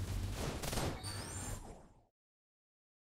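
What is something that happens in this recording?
Sword strikes and bursts of magic crash in quick succession.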